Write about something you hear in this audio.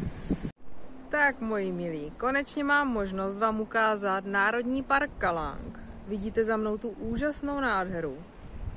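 A woman speaks cheerfully and close by.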